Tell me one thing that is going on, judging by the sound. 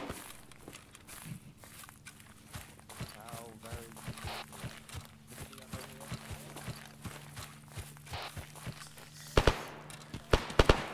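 Footsteps tread steadily over grass and dirt.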